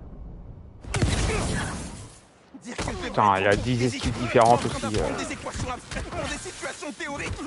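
Punches land with heavy thuds in a brawl.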